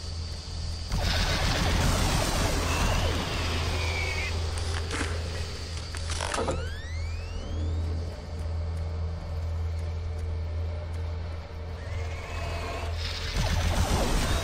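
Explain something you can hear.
A plasma gun fires rapid crackling bursts.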